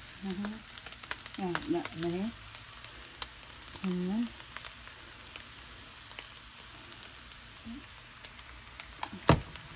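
Chopsticks scrape and stir noodles in a hot pan.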